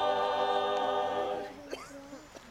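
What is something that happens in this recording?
A mixed choir sings a sustained chord outdoors, then stops.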